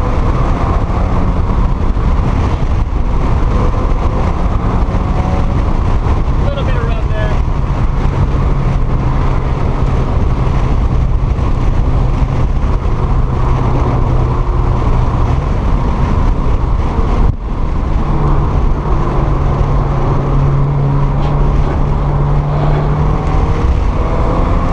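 A car engine drones steadily from inside the cabin, its pitch rising and falling as the car speeds along.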